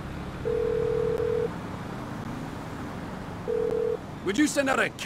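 A phone line rings with a ringback tone.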